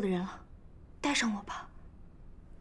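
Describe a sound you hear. Another young woman speaks briefly and pleadingly.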